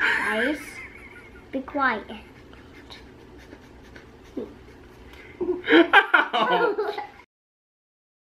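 A young man laughs close by.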